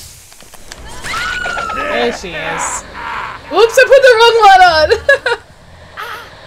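A woman screams loudly and shrilly close to a microphone.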